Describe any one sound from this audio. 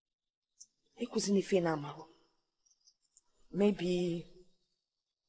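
A young woman speaks nearby.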